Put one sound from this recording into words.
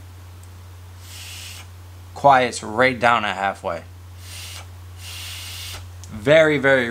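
A young man inhales sharply through a device, with a soft hiss.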